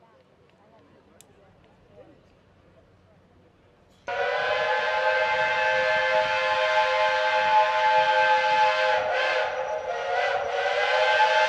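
A diesel locomotive engine rumbles.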